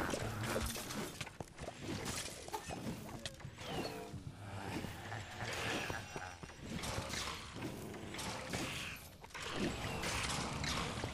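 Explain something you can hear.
Game sword swings and hits clash rapidly.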